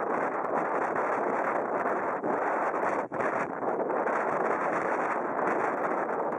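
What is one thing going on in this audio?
Waves surge and crash against rocks below.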